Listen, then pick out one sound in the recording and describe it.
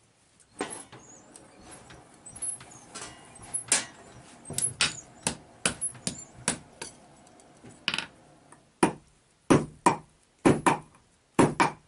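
Hammers strike hot metal on an anvil with sharp ringing clangs.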